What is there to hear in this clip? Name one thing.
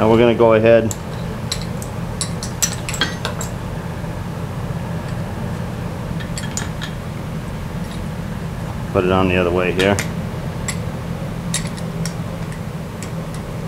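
Metal parts clink and click as a tool is handled.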